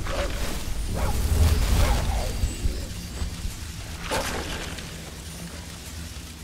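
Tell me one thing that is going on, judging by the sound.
A magic spell hums and crackles steadily in a low drone.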